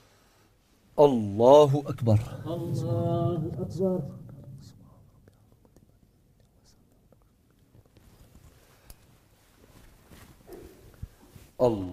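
A man chants loudly through a microphone in an echoing hall.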